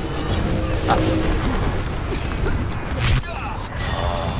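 Gunfire and game effects crackle and boom.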